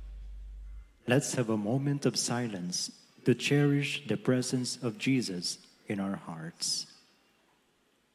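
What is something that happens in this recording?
A man sings a chant through a microphone in a large echoing space.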